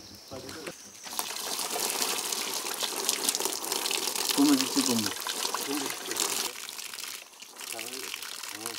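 Water splashes steadily from a tap.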